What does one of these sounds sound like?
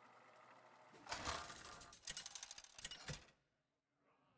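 Game reels spin with a rattling whir and stop with a clunk.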